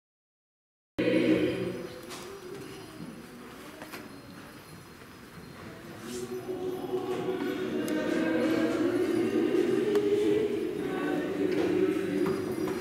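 A man chants a prayer, echoing in a large hall.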